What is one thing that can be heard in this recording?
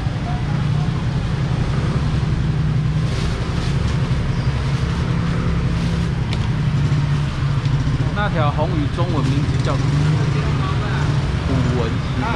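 A steady low rumble of a busy outdoor market fills the air.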